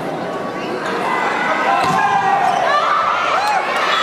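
A volleyball thuds off a player's arms.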